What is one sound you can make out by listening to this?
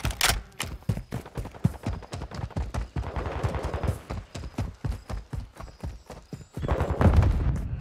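Quick footsteps thud on hard ground as someone runs.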